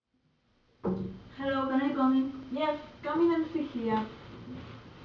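A young woman speaks loudly and with animation close by.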